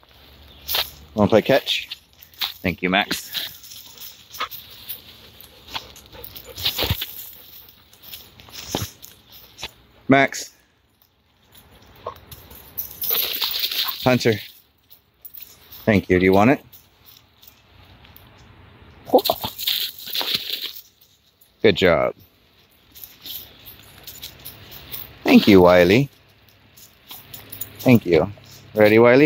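A dog whines and yelps nearby.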